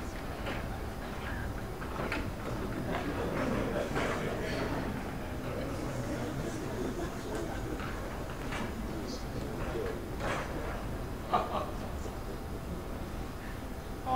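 Adults murmur and talk quietly in a large room.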